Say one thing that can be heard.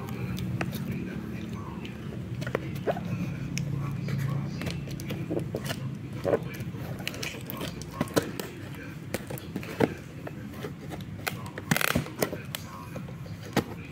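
Scissors snip and scrape at packing tape on a cardboard box.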